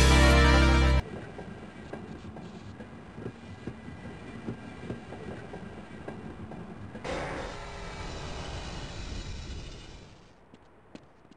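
A rail cart rumbles steadily along a track and then comes to a stop.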